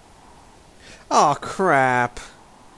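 A man speaks calmly and briefly.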